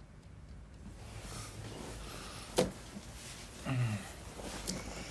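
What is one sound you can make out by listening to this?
Bedsheets rustle as a man shifts in bed.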